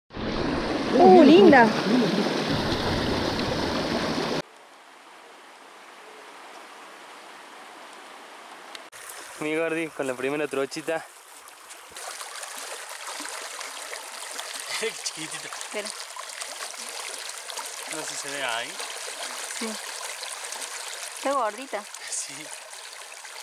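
Water rushes over rocks close by.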